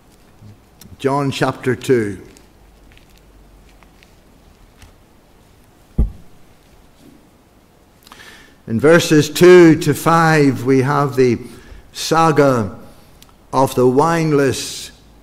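An elderly man speaks slowly and deliberately into a microphone, with pauses.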